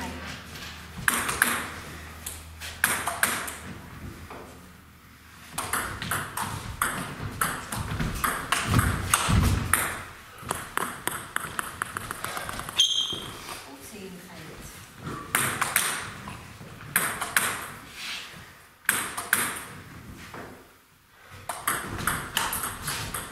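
A ping-pong ball clicks back and forth on paddles and a table in a large echoing hall.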